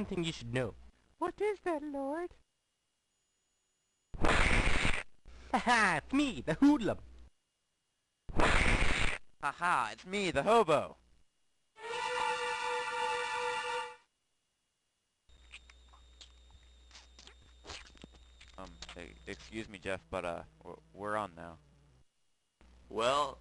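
Cartoon voices talk with animation in high, comic tones.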